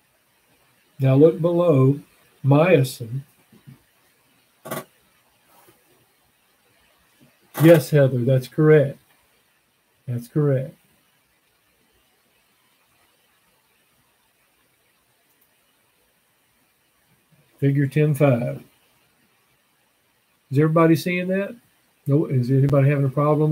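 An elderly man speaks calmly and close up, in short bursts with pauses.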